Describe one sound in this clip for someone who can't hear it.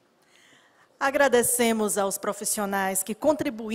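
A woman speaks into a microphone over loudspeakers in a large hall.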